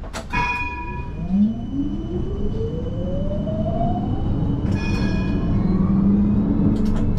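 A tram motor whines, rising in pitch as it speeds up.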